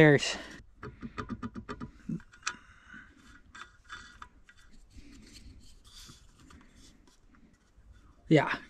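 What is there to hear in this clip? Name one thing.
Small hard parts click and rattle as they are fitted together by hand.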